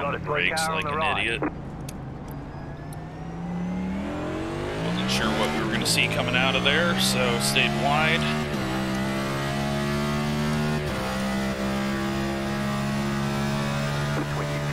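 A race car engine revs up and down, shifting gears.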